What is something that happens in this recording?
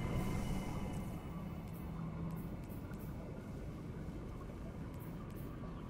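Soft menu clicks tick several times as a game menu is browsed.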